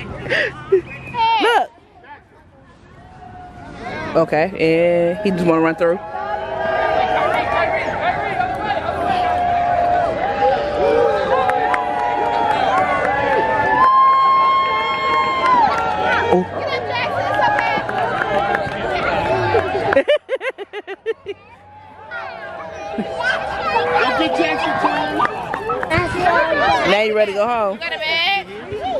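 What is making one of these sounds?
A crowd of adults and children cheers and shouts outdoors.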